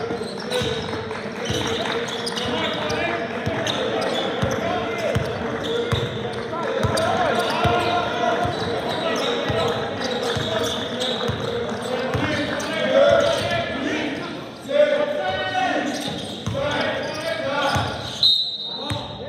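A basketball bounces repeatedly on a hard floor in a large echoing hall.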